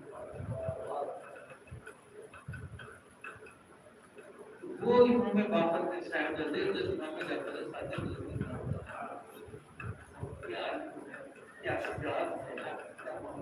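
An elderly man speaks calmly and steadily, close by.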